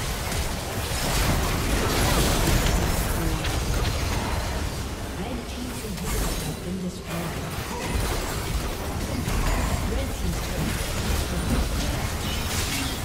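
Game spell effects and attacks crackle and boom in a busy fight.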